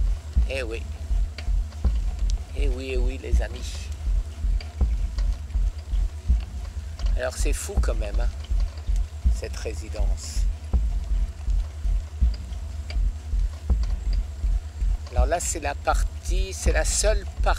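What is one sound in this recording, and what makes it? An elderly man speaks close by, sounding cheerful.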